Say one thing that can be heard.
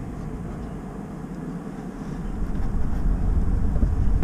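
A hand knocks and clinks against metal parts close by.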